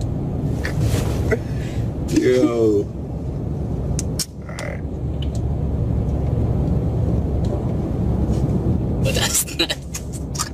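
A car's engine and road noise rumble low and steady from inside the car.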